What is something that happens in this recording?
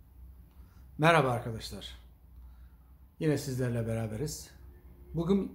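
A middle-aged man speaks calmly and slowly, close to the microphone.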